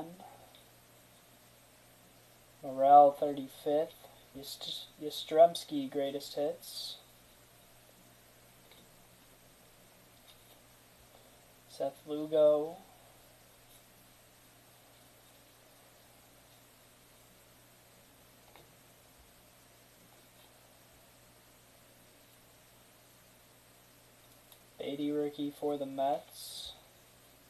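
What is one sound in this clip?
Trading cards rustle and slide softly as a stack is flipped through by hand.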